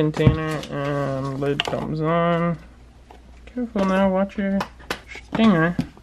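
Plastic tubs clatter softly as they are handled.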